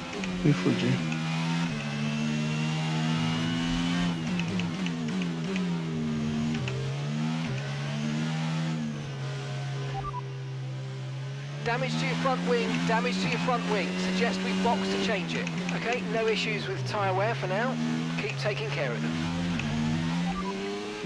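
A racing car engine roars, rising and falling in pitch as gears shift.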